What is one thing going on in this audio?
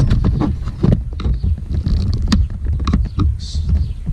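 A screwdriver scrapes and clicks against hard plastic.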